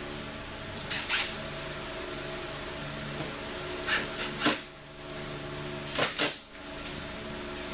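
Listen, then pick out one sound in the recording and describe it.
Metal parts click and clank as a motorcycle is worked on.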